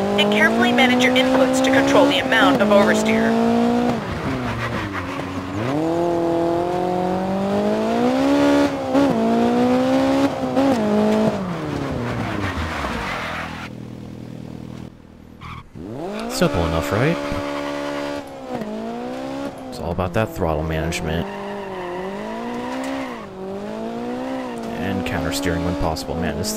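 Tyres skid and crunch on loose gravel.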